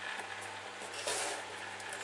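Cardboard slides and scrapes against cardboard.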